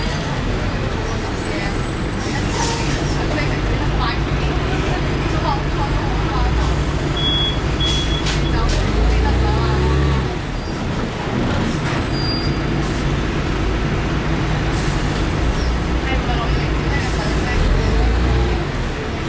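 Metal fittings rattle and clink as the bus rolls.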